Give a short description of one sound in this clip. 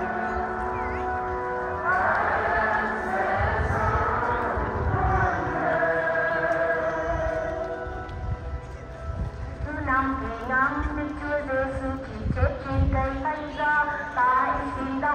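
A group of women sing together outdoors.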